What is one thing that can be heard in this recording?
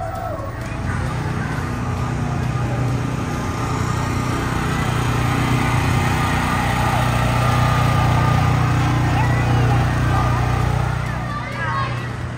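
A truck engine rumbles as it rolls slowly past.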